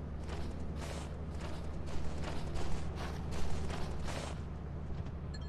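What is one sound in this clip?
Footsteps clang on a metal floor.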